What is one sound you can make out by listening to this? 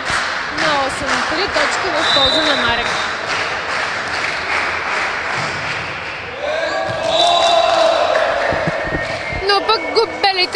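A crowd cheers and shouts in an echoing indoor hall.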